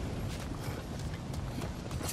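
Footsteps scrape on stone.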